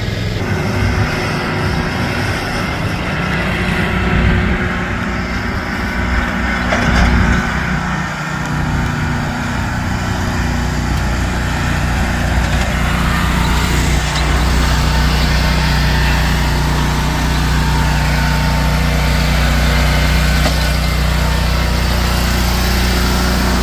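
A lawn mower engine runs with a steady low drone.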